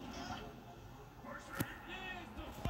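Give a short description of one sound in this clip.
A cartoonish explosion booms in a video game.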